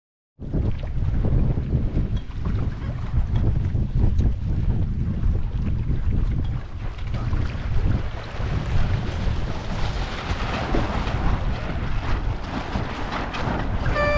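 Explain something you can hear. Water splashes and rushes against a moving boat's hull.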